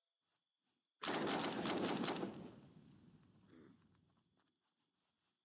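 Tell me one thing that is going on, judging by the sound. A fire roars and crackles, then slowly dies down.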